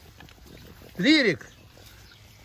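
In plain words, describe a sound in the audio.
A small dog yelps close by.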